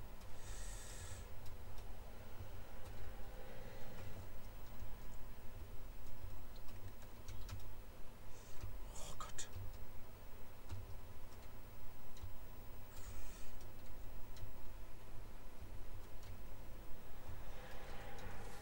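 Electronic game music with a pounding bass plays steadily.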